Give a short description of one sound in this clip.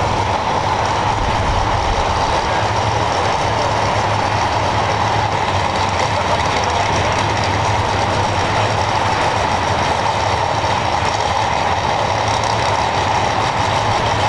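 A drag racing car's engine idles with a loud, steady rumble.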